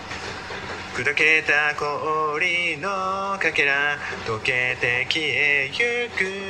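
A young man sings close by.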